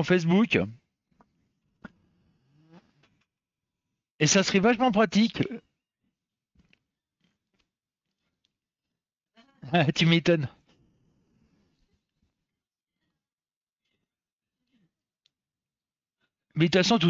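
A middle-aged man talks calmly and close to a headset microphone, in short bursts with pauses.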